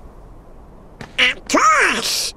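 A duck-like cartoon voice squawks excitedly.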